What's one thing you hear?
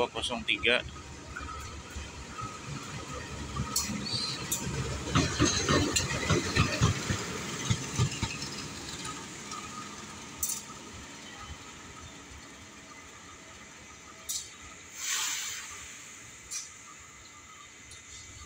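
A diesel locomotive rumbles past up close and then fades into the distance.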